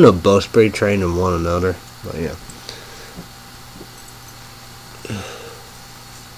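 A young man speaks close to a microphone, casually and with pauses.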